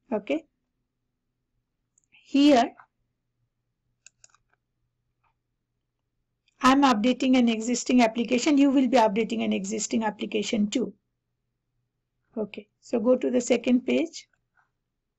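A woman speaks calmly into a headset microphone, close up.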